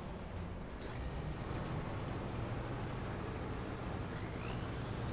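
A heavy truck engine rumbles low and steady as the truck drives slowly.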